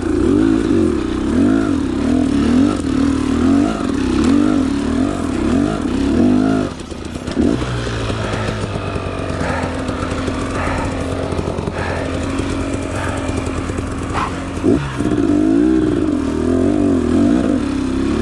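A dirt bike engine revs hard in rising and falling bursts.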